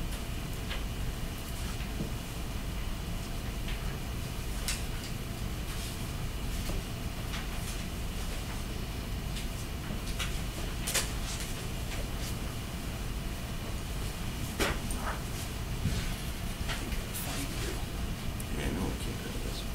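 A man taps keys on a laptop.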